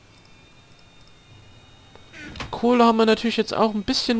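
A wooden chest lid thumps shut.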